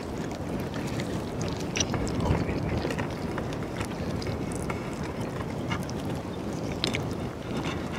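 Hands tear apart roasted chicken with soft wet sounds.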